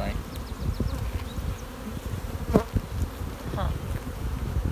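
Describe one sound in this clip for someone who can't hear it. A hive tool scrapes and knocks against wooden frames.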